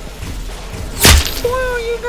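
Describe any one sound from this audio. A game gun fires a sharp zapping shot.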